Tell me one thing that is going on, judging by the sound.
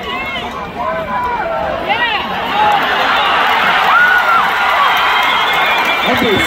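A large crowd outdoors cheers and shouts, growing louder as a play unfolds.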